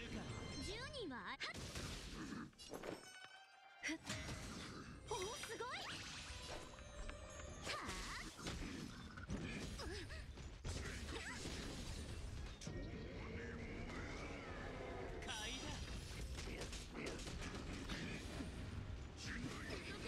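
Blades slash and heavy blows crash in a fast fight.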